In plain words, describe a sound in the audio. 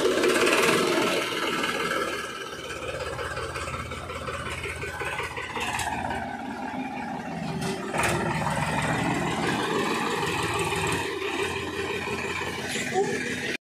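Tractor tyres crunch over dirt.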